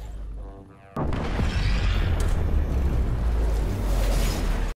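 A huge explosion booms and roars, then rumbles on.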